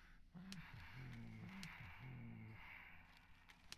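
A man speaks calmly and faintly.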